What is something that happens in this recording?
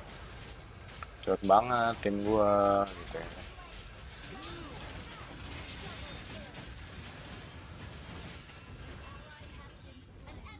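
Game battle effects clash and whoosh.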